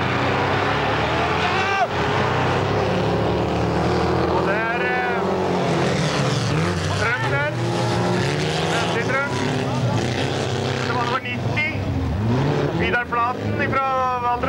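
Race cars roar off the start and speed past.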